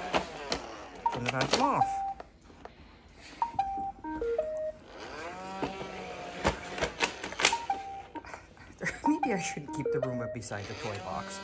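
A robot vacuum plays short electronic beeps and tones.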